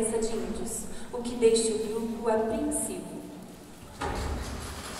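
A young woman sings.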